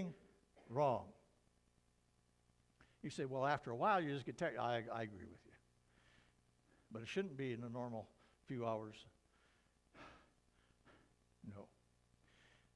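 An elderly man speaks calmly and slowly into a microphone in a large room, with pauses between phrases.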